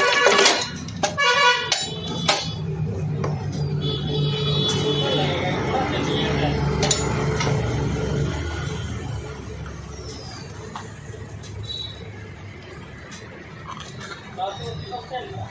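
Metal parts clink and rattle as hands work on a scooter's drive.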